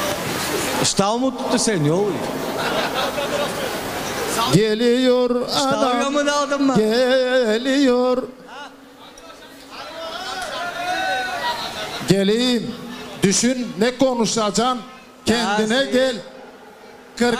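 A man sings with a wavering voice through a microphone and loudspeaker.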